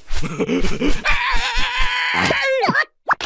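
A cartoon voice cries out in a long, wailing shriek.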